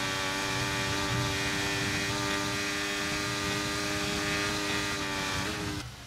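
A racing car engine whines steadily at high revs.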